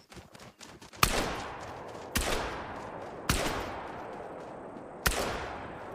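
A rifle fires several sharp shots that echo away.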